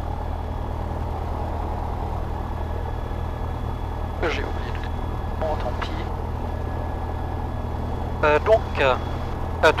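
A small plane's engine drones steadily throughout.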